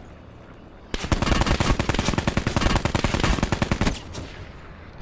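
A rifle fires in a rapid burst of loud shots.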